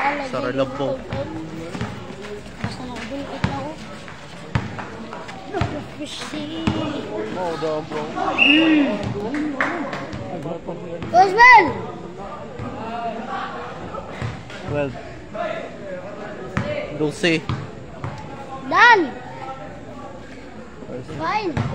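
Young men shout during a basketball game.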